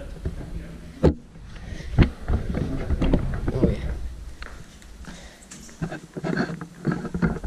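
Footsteps thud down a carpeted staircase.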